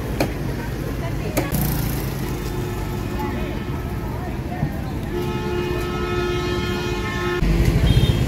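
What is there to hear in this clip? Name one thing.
Women talk nearby.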